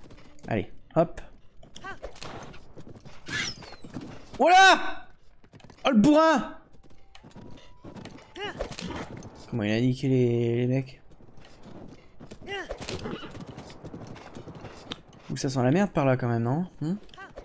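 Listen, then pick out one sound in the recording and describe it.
A horse's hooves thud on snow at a gallop.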